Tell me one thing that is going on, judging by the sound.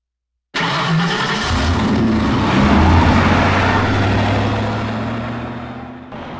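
Tyres screech and spin on the road.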